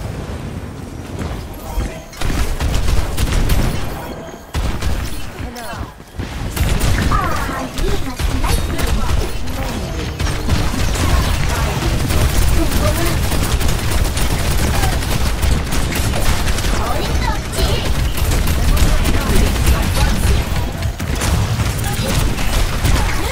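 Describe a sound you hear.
Game explosions and ability effects burst loudly.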